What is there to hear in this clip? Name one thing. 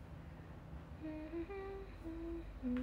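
A young woman hums softly close by.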